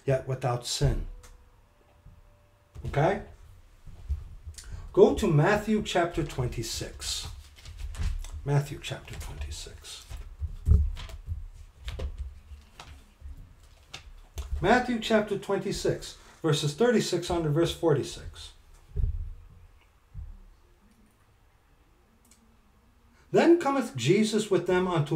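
A middle-aged man talks calmly and close to a microphone, in short bursts with pauses.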